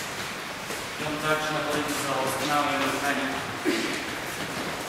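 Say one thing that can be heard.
A young man speaks calmly, close by, in an echoing hall.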